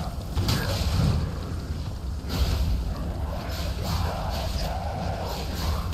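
Footsteps scrape on a stone floor.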